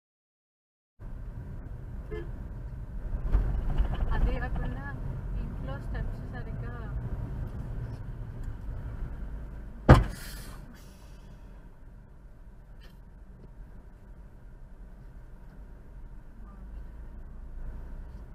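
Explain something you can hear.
Car tyres and engine rumble steadily along a road.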